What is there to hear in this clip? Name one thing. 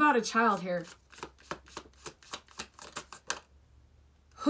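Cards shuffle and riffle in a woman's hands.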